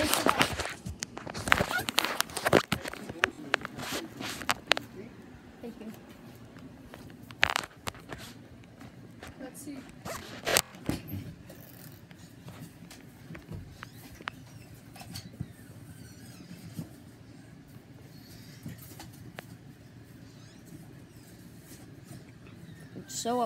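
A cardboard box bumps and scrapes as it is handled close by.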